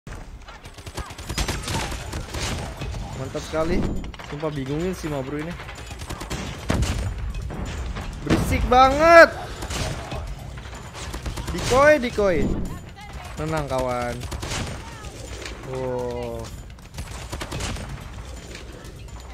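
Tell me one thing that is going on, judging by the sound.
Rapid gunfire crackles and bangs.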